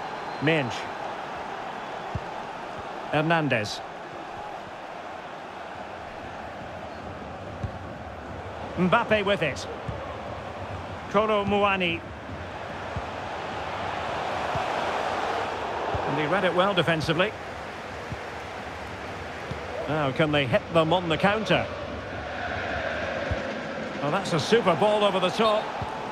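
A large crowd murmurs and cheers steadily in a big open stadium.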